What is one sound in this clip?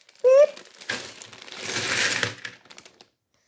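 Plastic bricks rattle and clatter as a hand stirs through a pile.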